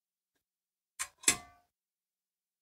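A metal steamer basket clinks and rings as it is set into a cooking pot.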